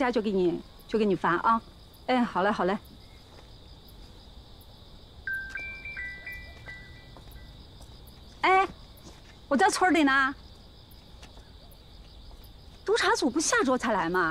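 A woman speaks calmly on a phone, close by.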